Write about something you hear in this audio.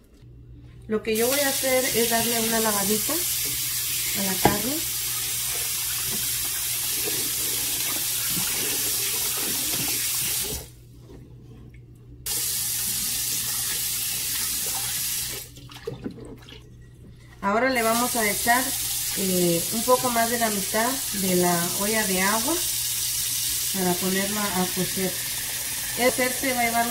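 Water runs from a tap and splashes into a pot.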